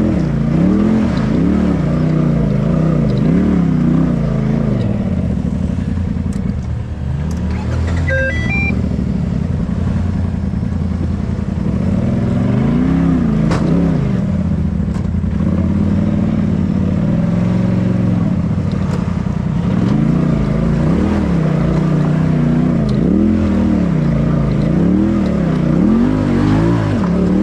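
Tyres crunch and scrape over loose rocks.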